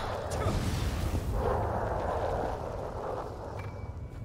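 Metal weapons clash and sparks crackle in a fight.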